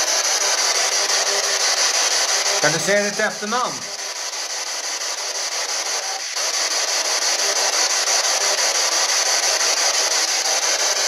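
A handheld device hisses with steady, crackling static.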